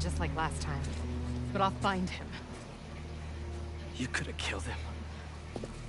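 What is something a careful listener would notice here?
A young woman speaks in a low, tense voice.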